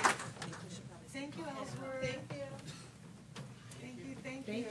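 A woman talks briefly nearby.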